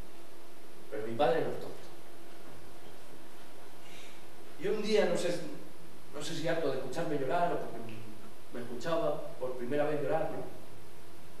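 A young man speaks slowly on a stage, with pauses, heard in a large room.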